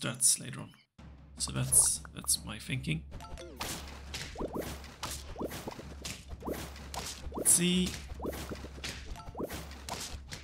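Cartoon battle sound effects thump and clash in quick succession.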